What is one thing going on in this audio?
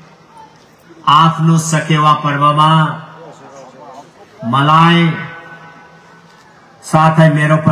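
A middle-aged man speaks forcefully into a microphone, heard over loudspeakers in open air.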